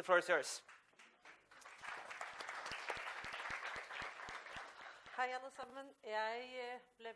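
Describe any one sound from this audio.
A middle-aged woman speaks with animation into a microphone.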